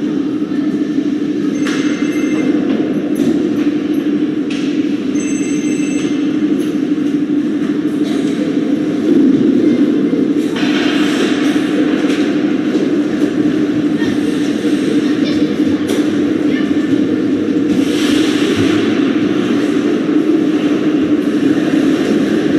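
Ice skates scrape and glide on ice in a large echoing rink.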